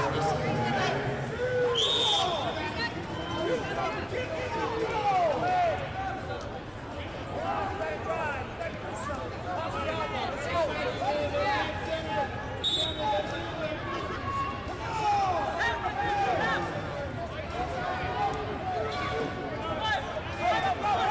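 Shoes squeak sharply on a rubber mat.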